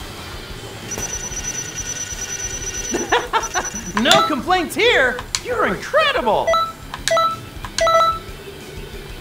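Bright electronic chimes ring in quick succession.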